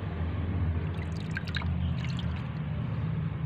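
Water splashes as a hand scoops through it.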